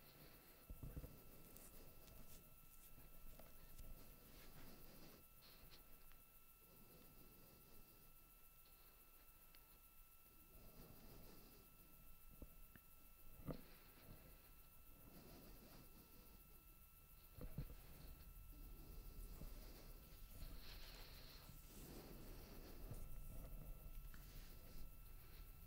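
A rocket engine roars in the distance with a deep, rumbling thunder.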